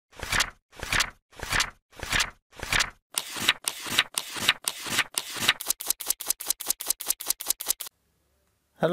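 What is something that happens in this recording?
Paper pages flip quickly, speeding up.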